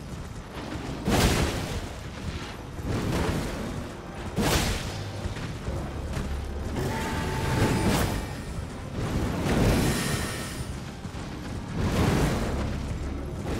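Heavy blows land with loud crashes.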